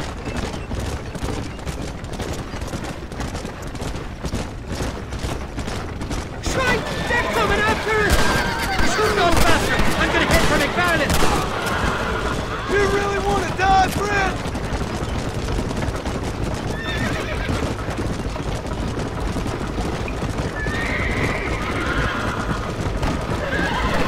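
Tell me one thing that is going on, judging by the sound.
A wooden wagon rattles and creaks along a dirt road.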